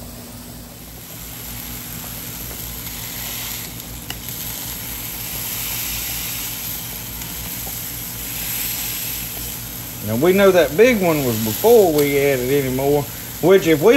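Burgers sizzle in a hot frying pan.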